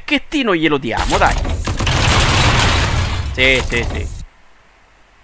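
A machine gun fires.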